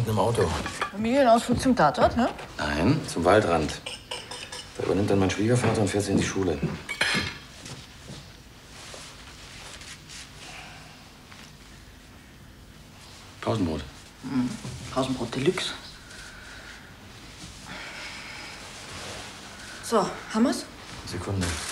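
A young woman answers calmly nearby.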